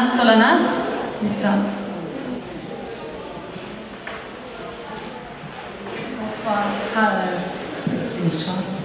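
A woman speaks into a microphone, close and clear.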